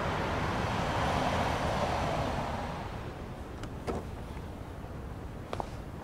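A car engine hums as a car drives up and stops.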